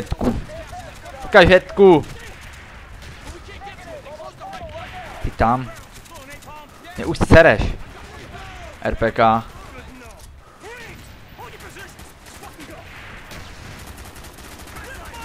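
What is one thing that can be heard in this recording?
A machine gun fires in short bursts close by.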